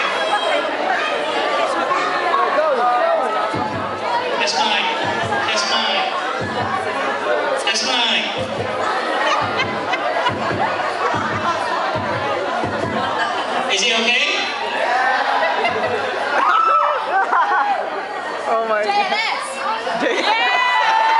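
Loud music plays through speakers in a large echoing hall.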